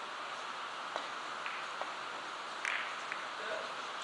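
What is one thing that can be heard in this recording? Billiard balls click against each other and the table's cushions.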